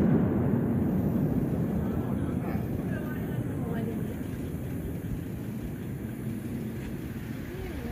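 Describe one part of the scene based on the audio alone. A firework's boom rolls and echoes away, slowly fading.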